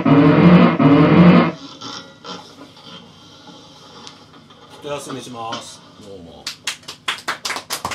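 An electric guitar plays loud, ringing chords, then is strummed in short, sharp strokes.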